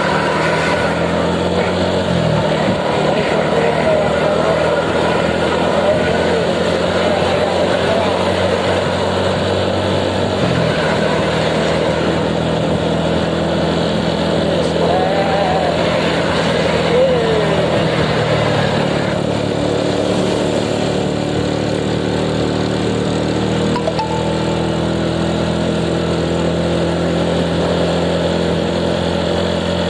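Wind rushes past steadily outdoors.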